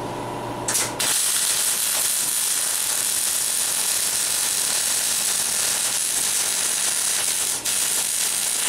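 An electric welder crackles and hisses steadily.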